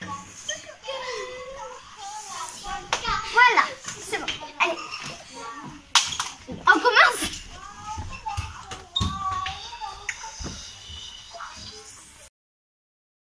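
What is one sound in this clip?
A young girl talks excitedly and laughs close by.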